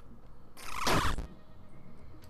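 A revolver fires in a video game.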